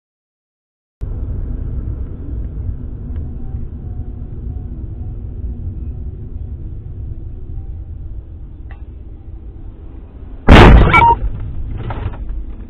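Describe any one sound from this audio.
A car's tyres rumble steadily on the road.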